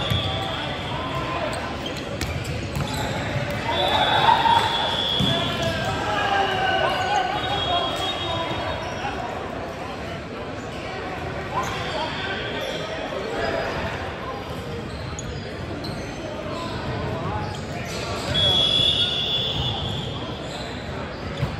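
Young men call out and chatter in a large echoing gym.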